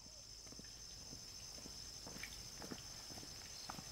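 A man's footsteps crunch on a dirt path.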